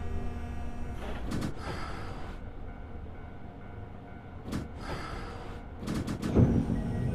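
Train wheels clack over rail joints in short bursts.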